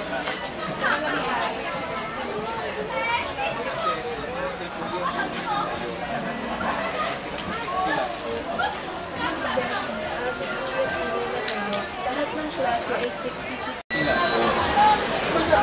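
A crowd of men and women chatter all around in a busy, echoing hall.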